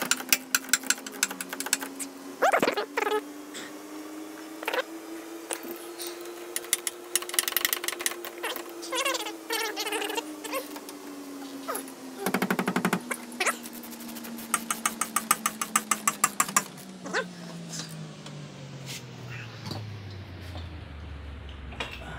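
A ratchet wrench clicks rapidly in short bursts.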